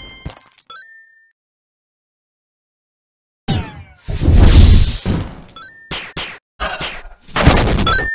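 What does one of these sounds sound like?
Game chimes ring in short bright tones.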